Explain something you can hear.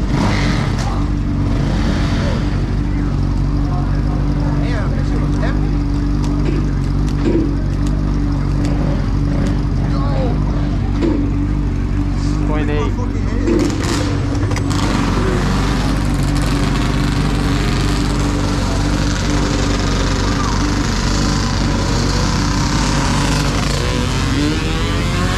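A dirt bike engine idles with a steady, rumbling putter.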